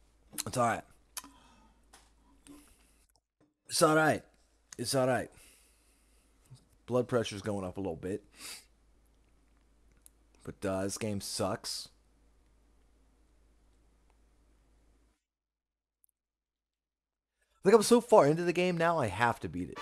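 A young man talks casually into a close microphone, in short bursts with pauses.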